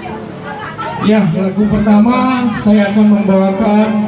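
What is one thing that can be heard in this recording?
A band plays loudly.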